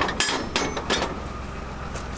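Flatbread is set down on a hot metal griddle with a light clatter.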